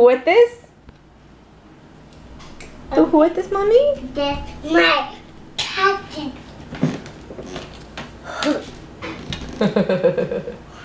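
A young girl talks and sings excitedly close by.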